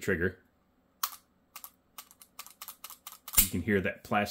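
A pistol's metal parts click sharply as it is handled.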